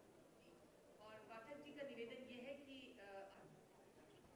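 A man speaks briefly over a loudspeaker in a large echoing hall.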